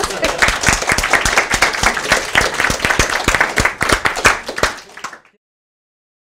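An audience applauds in a large room, then the clapping fades away.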